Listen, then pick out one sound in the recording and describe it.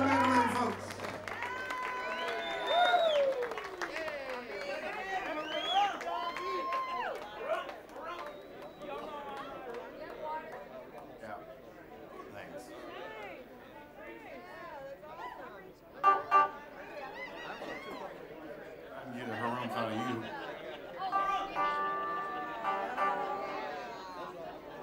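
A crowd cheers, whoops and whistles in a large room.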